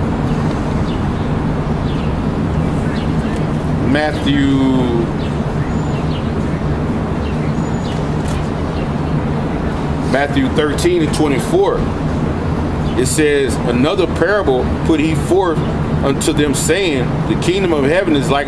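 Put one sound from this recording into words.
Traffic hums steadily in the background.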